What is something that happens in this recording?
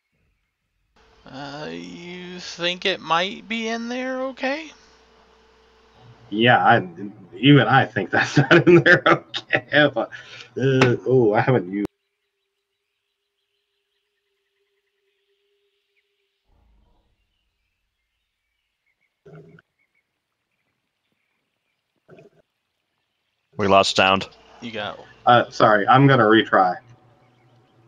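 Several men talk with animation over an online call.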